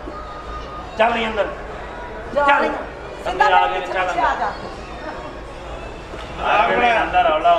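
A man speaks loudly with animation on a stage, heard through a microphone in a large room.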